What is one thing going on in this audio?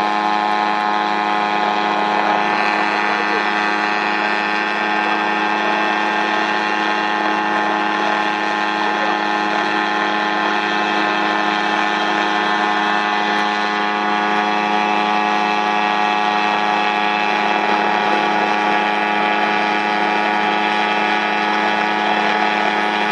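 A small helicopter's engine whines steadily with a loud buzz overhead.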